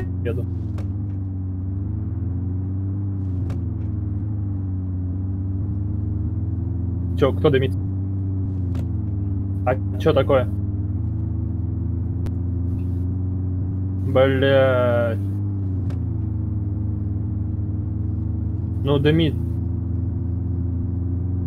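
A car engine drones steadily and rises in pitch as the car speeds up.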